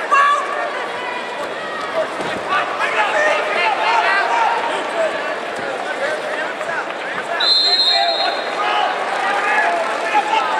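A large crowd chatters and calls out, echoing around a big hall.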